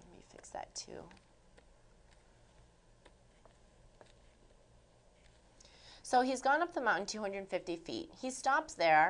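A young woman speaks calmly into a microphone, explaining.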